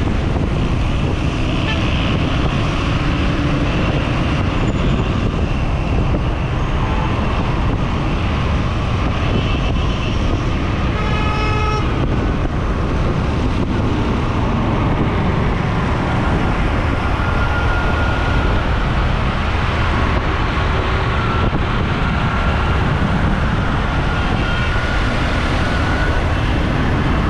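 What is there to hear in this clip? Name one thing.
Wind rushes loudly past, as from a moving motorcycle.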